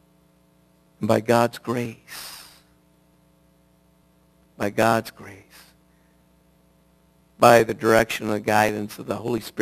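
A middle-aged man speaks with animation through a headset microphone, in bursts with pauses.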